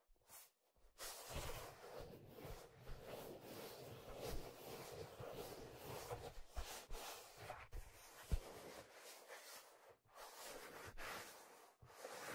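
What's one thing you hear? Hands rub and squeeze leather close to a microphone, making soft creaks and rustles.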